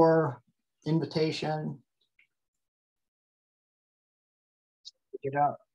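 A man talks calmly through a microphone, in short bursts with pauses.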